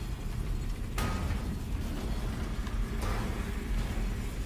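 Electricity crackles and buzzes.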